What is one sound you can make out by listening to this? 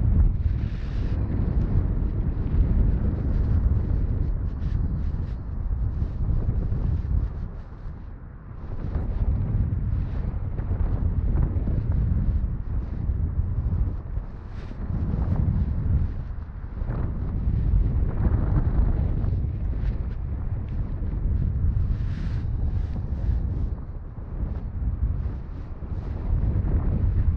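Cloth rubs and rustles right against the microphone.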